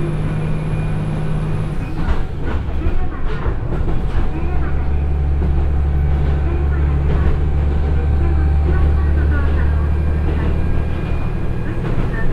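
Train wheels clatter rhythmically on the rails.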